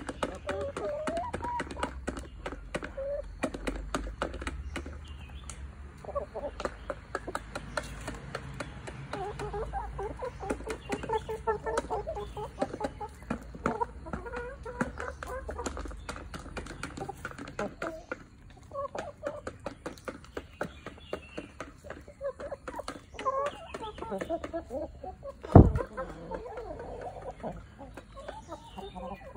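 Chickens peck at the ground with quick tapping sounds.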